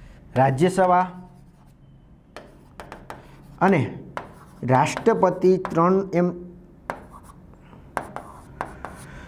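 A marker squeaks and taps on a whiteboard.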